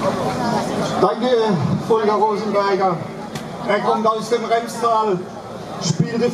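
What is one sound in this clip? An elderly man speaks with emphasis into a microphone over loudspeakers.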